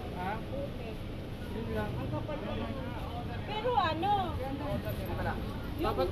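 A plastic bag rustles as hands handle it.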